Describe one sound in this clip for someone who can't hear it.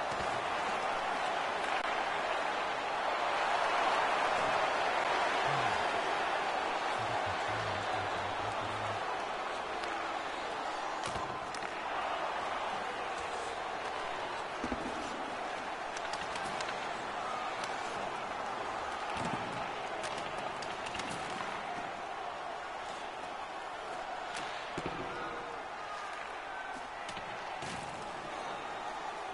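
Ice skates scrape across ice.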